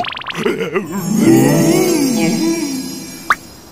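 A second cartoon creature gasps and grumbles in a comic voice.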